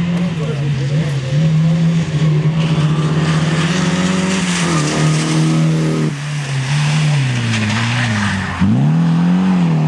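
Tyres hiss and splash on wet slush.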